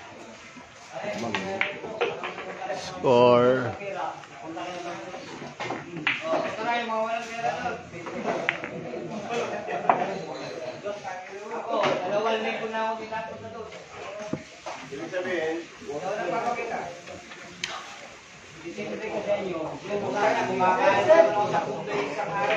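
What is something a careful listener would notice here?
Men talk and call out nearby in a lively crowd.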